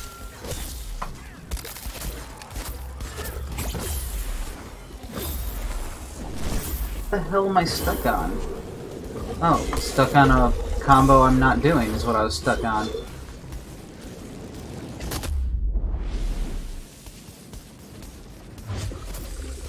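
Sword blows land with sharp, repeated hits.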